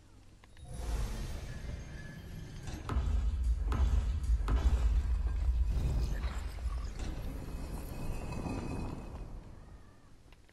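Heavy stone grinds and rumbles as it slides open.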